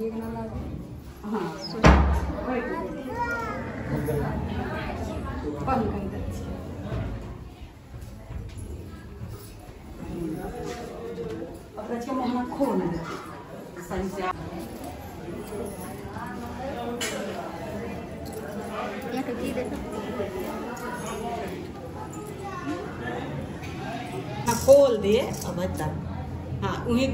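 Several women chatter and talk nearby.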